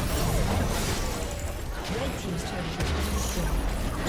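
A tower blows up with a loud explosion.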